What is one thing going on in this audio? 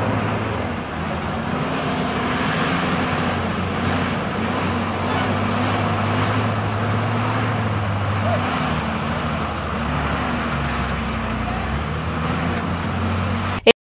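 A diesel excavator engine rumbles and revs steadily nearby.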